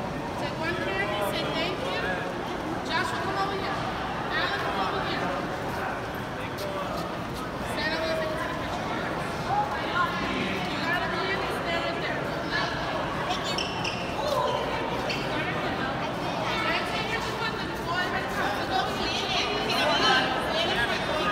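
A crowd of people talks and shouts loudly in a large echoing hall.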